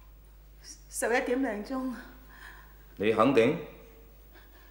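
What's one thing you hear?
A middle-aged woman answers in a shaky, worried voice.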